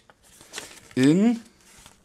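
Paper rustles as a leaflet is unfolded.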